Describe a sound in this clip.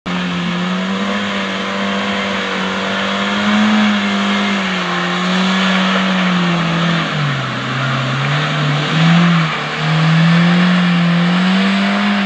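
Tyres churn and squelch through wet mud.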